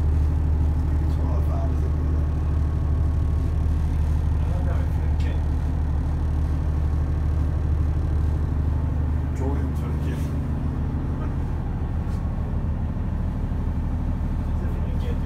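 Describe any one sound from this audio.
A ship's engine hums in a low, steady drone.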